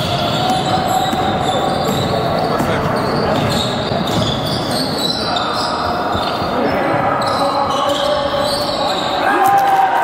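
A crowd of spectators chatters in a large echoing hall.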